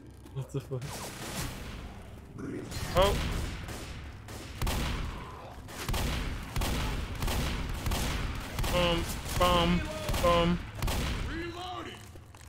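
A shotgun fires in loud booming blasts.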